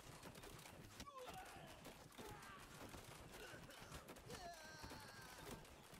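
Men grunt and shout in battle.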